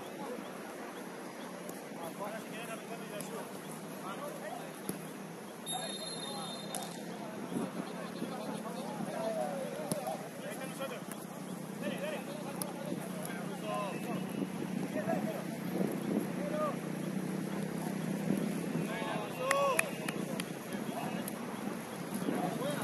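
Young men shout and call to each other across an outdoor pitch.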